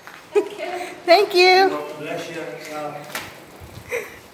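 A middle-aged woman laughs loudly close to the microphone.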